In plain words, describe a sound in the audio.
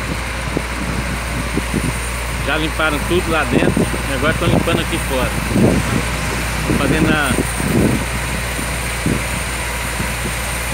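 A tanker truck's engine rumbles as it creeps along the street.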